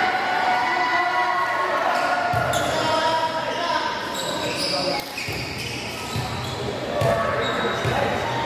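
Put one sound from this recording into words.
Young players shout and cheer in a large echoing hall.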